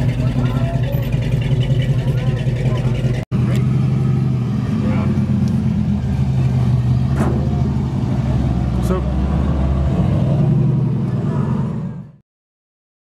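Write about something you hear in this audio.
A car engine rumbles deeply at idle.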